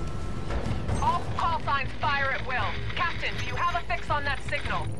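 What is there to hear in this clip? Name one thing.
A woman speaks calmly over a radio.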